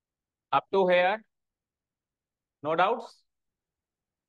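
A man speaks briefly through a microphone, in short phrases.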